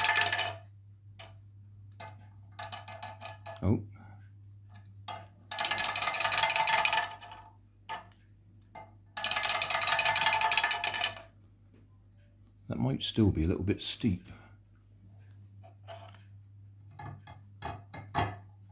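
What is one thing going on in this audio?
A ceramic figure knocks against a slate slab as it is set down.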